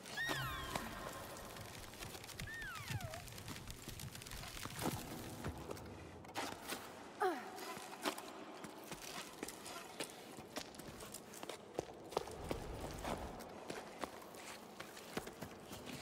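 Hands grip and scrape against rock as a climber pulls upward.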